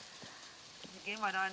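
A young woman speaks up close through a microphone.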